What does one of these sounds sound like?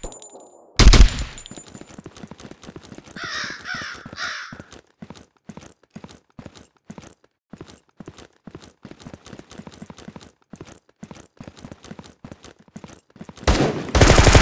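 Footsteps tap quickly and steadily on hard ground.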